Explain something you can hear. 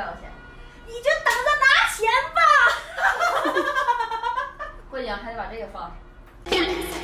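A young woman talks and laughs with animation nearby.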